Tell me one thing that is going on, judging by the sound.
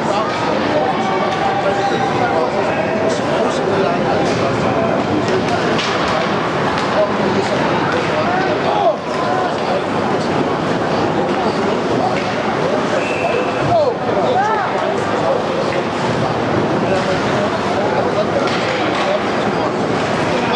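Skates scrape across the ice.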